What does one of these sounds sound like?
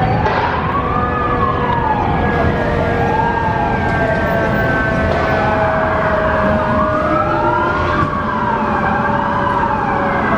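City traffic rumbles steadily.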